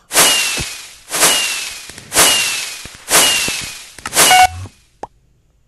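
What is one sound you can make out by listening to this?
Loud whooshing bursts celebrate a game victory, about once a second.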